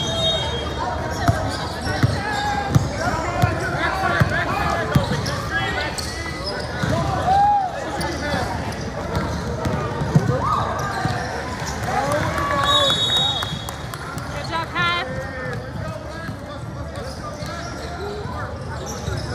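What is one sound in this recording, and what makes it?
A crowd of spectators chatters and calls out in the background.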